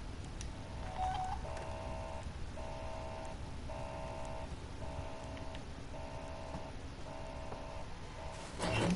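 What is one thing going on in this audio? An electronic terminal beeps in a steady repeating pattern.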